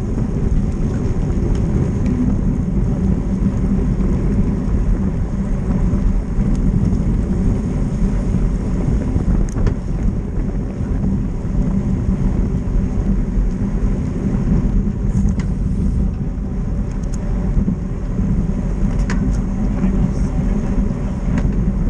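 Wind rushes loudly past the microphone of a moving bicycle.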